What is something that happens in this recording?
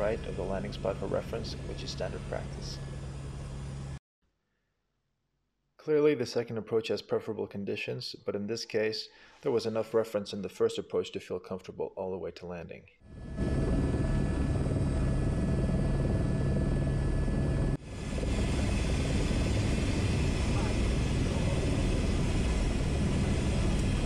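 A helicopter engine and rotor roar steadily from inside the cabin.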